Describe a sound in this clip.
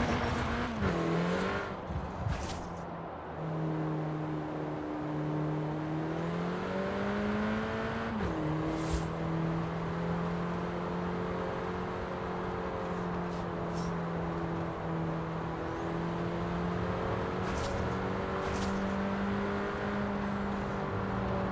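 A car engine hums and revs, rising in pitch as it speeds up and dropping at each gear change.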